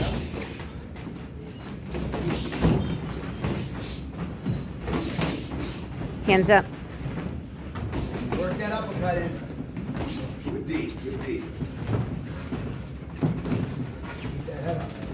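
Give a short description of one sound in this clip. Feet shuffle and thump on a padded ring floor.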